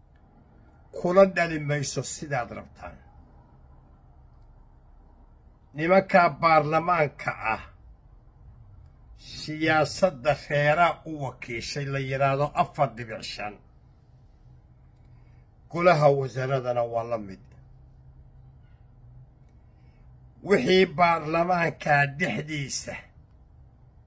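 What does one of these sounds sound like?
An elderly man speaks with animation close to the microphone, in short bursts with pauses.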